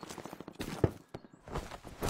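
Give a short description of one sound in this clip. Leaves and branches rustle as someone pushes through bushes.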